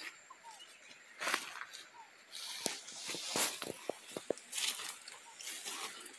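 Footsteps rustle through dry leaves and grass.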